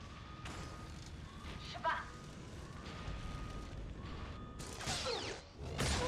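Laser blasts fire and explode with sharp bangs.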